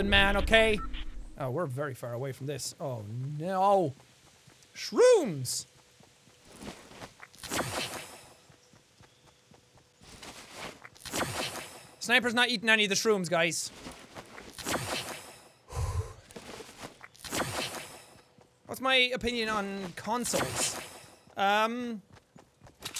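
A young man talks animatedly into a close microphone, with his pitch swinging up and down.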